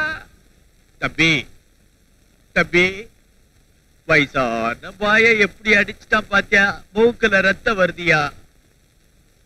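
An elderly man speaks with emotion, close by.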